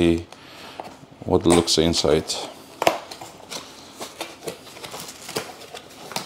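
Cardboard flaps scrape and tear as a box is pulled open.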